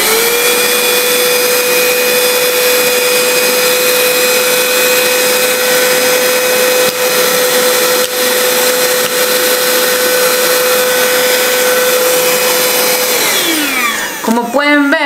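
A handheld vacuum cleaner whirs steadily with a high whine, then winds down.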